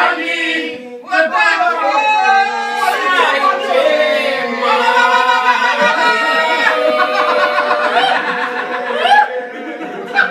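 A group of men sing together in close harmony, nearby.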